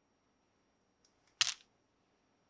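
Plastic toys rattle in a plastic basket.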